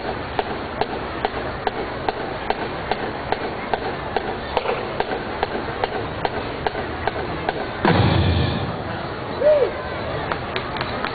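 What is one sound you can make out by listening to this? A marching band plays brass instruments outdoors.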